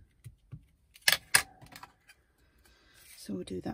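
A clear plastic stamp block rustles and knocks as hands handle it.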